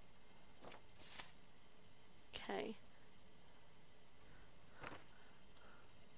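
Paper documents shuffle and slide.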